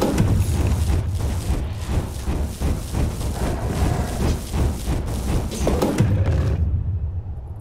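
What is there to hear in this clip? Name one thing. Game spells and weapon strikes crackle and thud in a busy fight.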